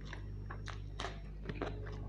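A man crunches into a chilli close to the microphone.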